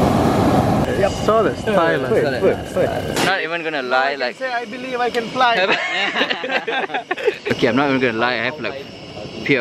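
Young men talk and laugh close by with animation.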